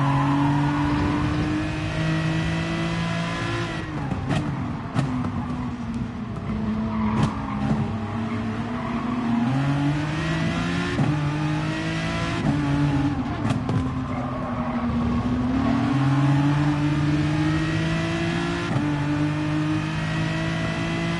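A racing car engine roars, rising and falling in pitch as the gears shift.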